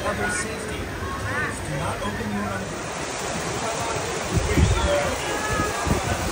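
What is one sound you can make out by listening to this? Riders on a raft shout and scream with excitement.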